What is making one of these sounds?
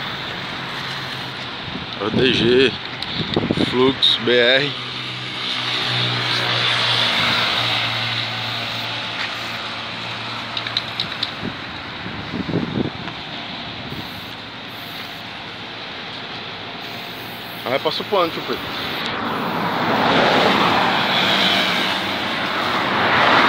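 Traffic rushes past on a road.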